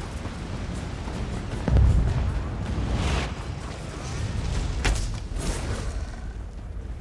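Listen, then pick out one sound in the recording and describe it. Spells crackle and burst in a fight.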